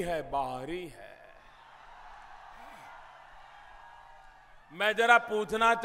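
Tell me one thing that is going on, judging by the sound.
A large crowd cheers in the distance.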